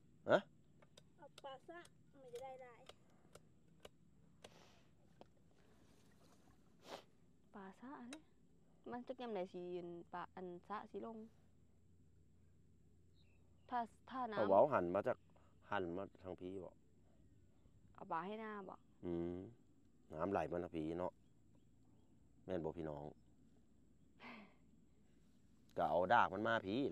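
A young woman speaks with animation close by, outdoors.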